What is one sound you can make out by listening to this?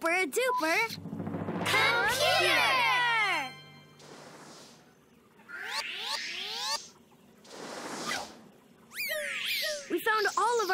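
A small electronic gadget chimes and whirs.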